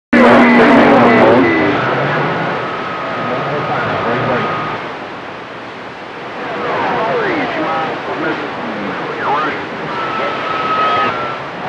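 A radio receiver hisses and crackles with static.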